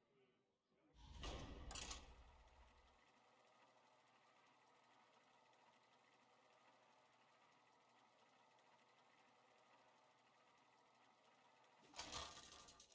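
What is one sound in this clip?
A mechanical whirring hums steadily.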